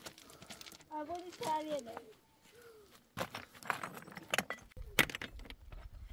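Loose stones clatter as they are lifted and stacked.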